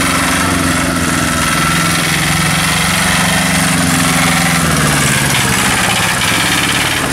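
A small tractor engine chugs loudly close by, its pitch rising and falling.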